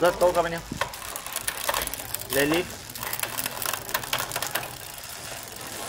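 A bicycle freewheel ticks rapidly as the rear wheel spins.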